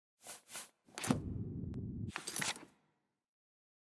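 A game menu opens with a short rustling whoosh.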